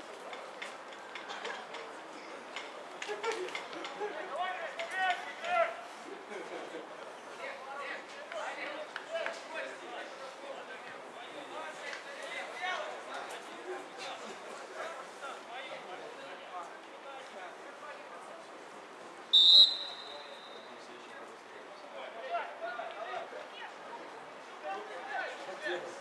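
Men shout and call to each other across an open field at a distance.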